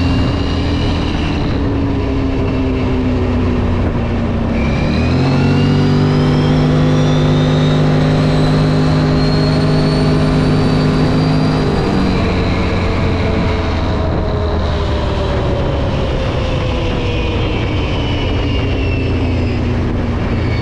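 A V-twin ATV engine accelerates and shifts gear while riding on asphalt.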